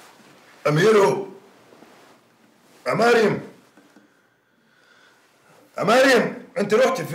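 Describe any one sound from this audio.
A middle-aged man calls out loudly in short bursts, close by.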